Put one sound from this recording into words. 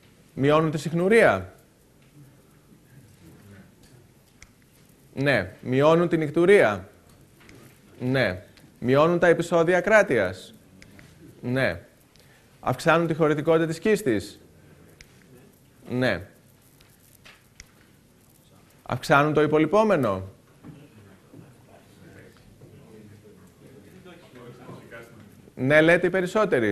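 A man lectures calmly through a microphone in short bursts with pauses.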